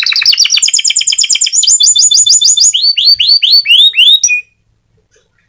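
A small bird sings a fast, loud trilling song close by.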